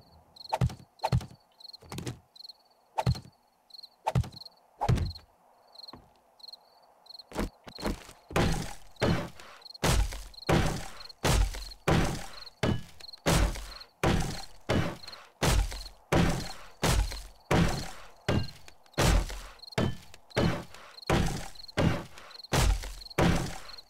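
A hammer strikes wood in rapid, even blows.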